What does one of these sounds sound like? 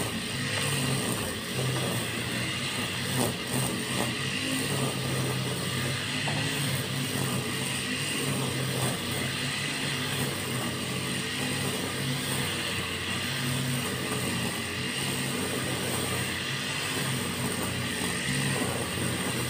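A string trimmer's engine buzzes steadily at a distance as it cuts grass.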